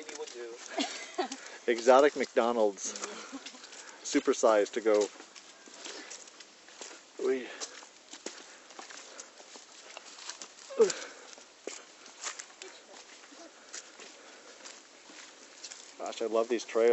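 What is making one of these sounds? Footsteps crunch on a dirt and rocky trail.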